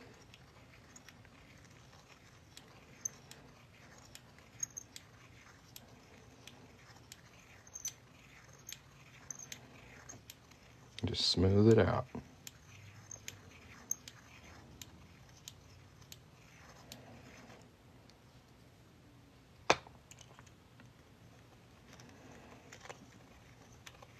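A small metal tool scrapes and ticks against a metal ring.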